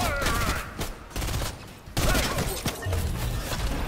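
Gunshots go off in a video game.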